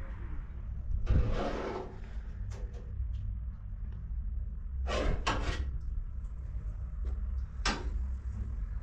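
A utensil clinks against a pan on a stove.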